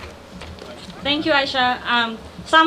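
A woman speaks calmly into a microphone over loudspeakers outdoors.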